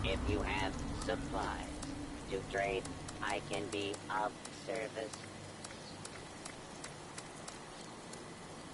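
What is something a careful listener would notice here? Soft menu clicks tick as a selection moves down a list.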